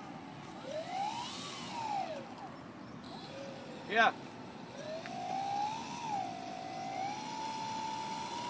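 A small electric motor whines, its pitch rising and falling as it speeds up and slows down.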